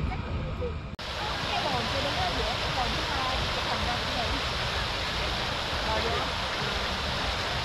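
A fountain's jets splash steadily into a pool.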